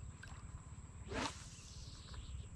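A fishing rod swishes as a line is cast.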